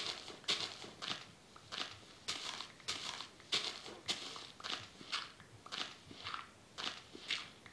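A shovel digs into dirt with repeated crunchy scrapes.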